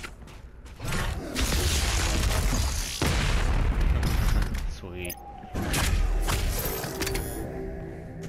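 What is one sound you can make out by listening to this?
A shotgun fires in loud booming blasts.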